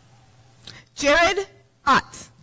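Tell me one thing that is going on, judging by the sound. A man announces loudly over a loudspeaker in a large echoing hall.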